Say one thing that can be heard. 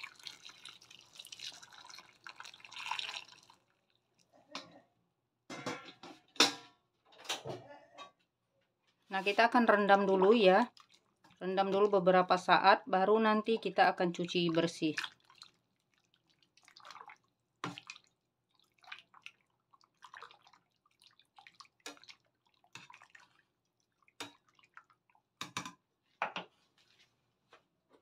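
Water bubbles and gurgles in a pot.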